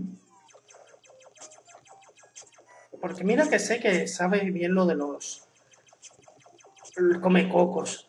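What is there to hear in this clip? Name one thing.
Retro video game sound effects beep and blip quickly from a small speaker.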